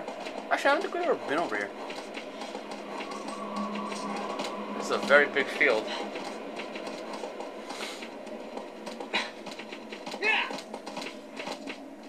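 A horse gallops with quick, rhythmic hoofbeats on soft ground.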